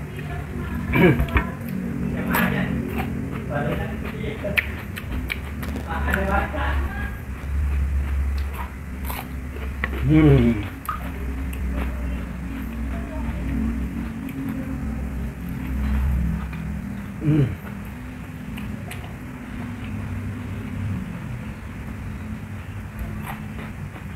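A young man hums and murmurs with pleasure while eating.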